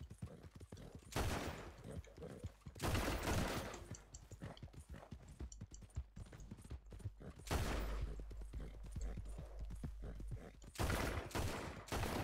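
Horse hooves gallop quickly over soft ground.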